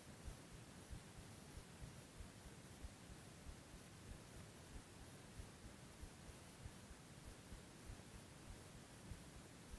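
Small waves lap gently against the hull of a small boat.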